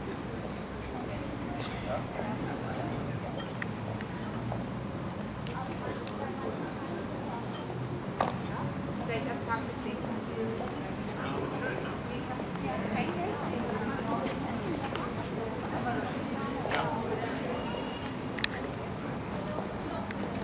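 Construction work clanks and knocks at a distance outdoors.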